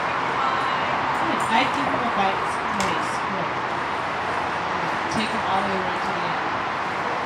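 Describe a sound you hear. A woman talks calmly to a dog nearby.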